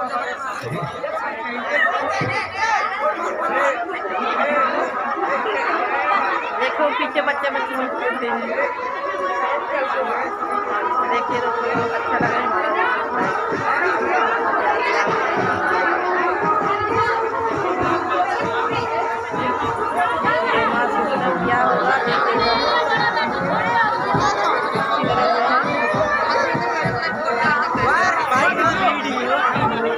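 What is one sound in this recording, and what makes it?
A crowd chatters noisily all around.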